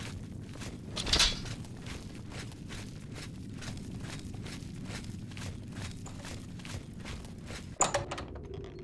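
Footsteps tread steadily on stone.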